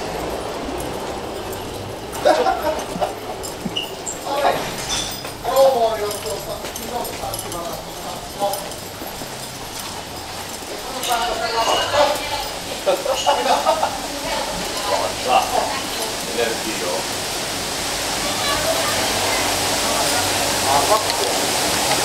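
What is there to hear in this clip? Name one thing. A crowd of people talks and shouts in a noisy, echoing room.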